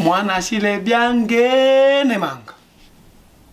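A young man sings a long, wavering note.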